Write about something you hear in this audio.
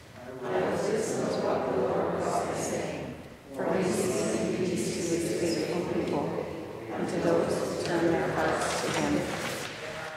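An elderly woman reads aloud steadily into a microphone in a large echoing hall.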